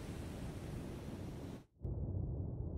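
Waves wash and hiss at the sea surface.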